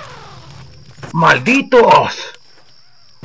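A young man speaks in a low, flat voice.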